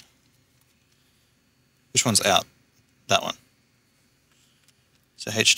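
Small plastic parts click softly as hands handle a controller.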